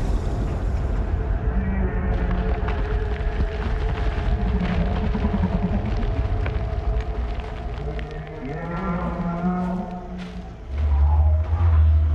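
Waterfalls rush and splash steadily.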